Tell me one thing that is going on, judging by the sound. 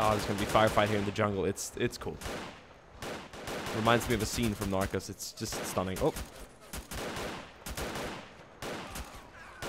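Rifles fire in short bursts nearby.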